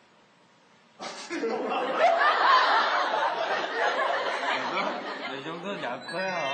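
A young man laughs loudly and heartily nearby.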